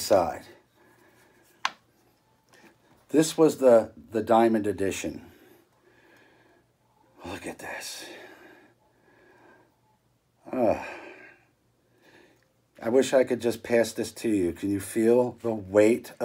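A middle-aged man talks calmly close by, pausing between phrases.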